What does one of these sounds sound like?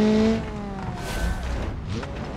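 A car body thuds heavily as the car lands after a jump.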